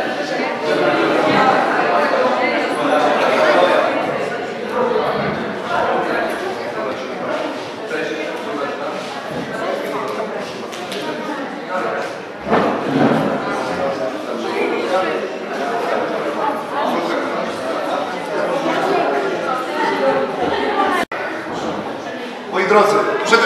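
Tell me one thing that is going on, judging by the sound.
Children and adults chatter all around in a busy room.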